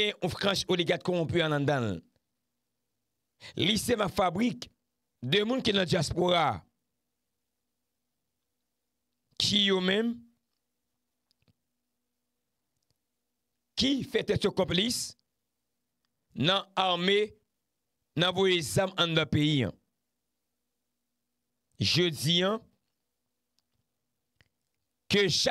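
A man speaks with animation close to a microphone, pausing often.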